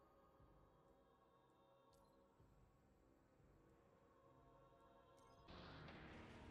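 Soft music plays calmly.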